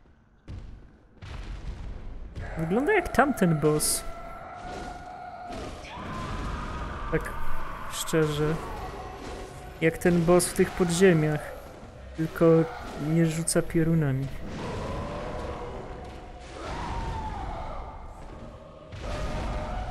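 Fighting sounds and a creature's roars come from a video game.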